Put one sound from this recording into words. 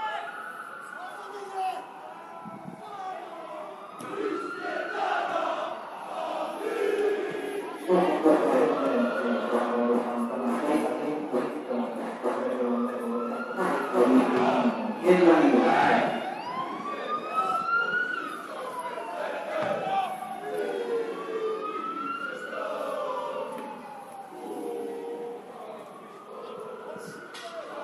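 Men shout to each other across an open football pitch, far off.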